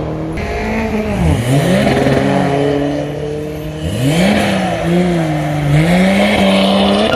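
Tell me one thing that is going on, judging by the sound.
A car engine revs up sharply several times and drops back.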